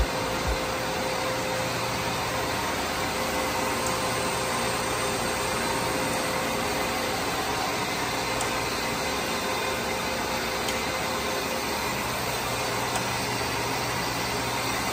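Machinery hums steadily with a loud, even rushing noise.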